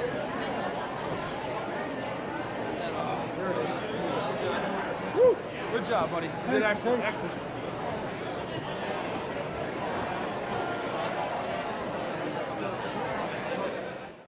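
A crowd murmurs and chatters throughout in a large echoing hall.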